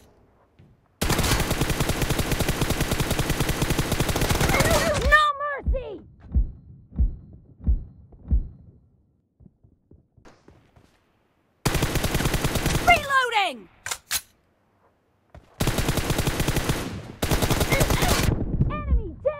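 Rapid gunfire rattles in long bursts.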